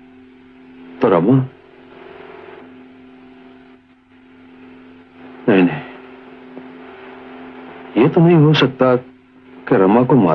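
An elderly man speaks forcefully in short bursts, close by.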